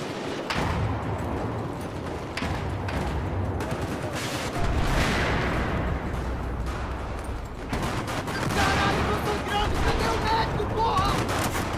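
A low rumble of explosions and battle noise goes on throughout.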